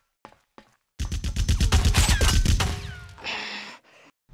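Blows and thuds land in a scuffle on metal.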